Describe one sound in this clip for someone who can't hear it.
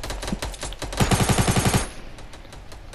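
A gun fires a fast, loud burst.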